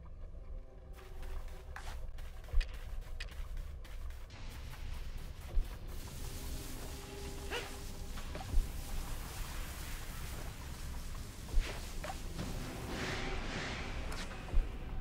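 Footsteps swish through tall grass at a running pace.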